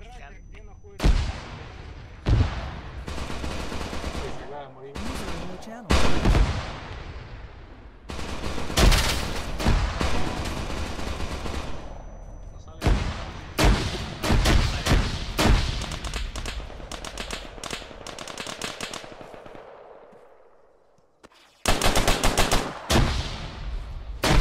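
Assault rifle shots crack in bursts.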